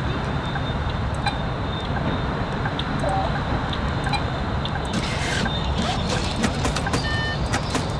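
Buttons beep on a ticket machine.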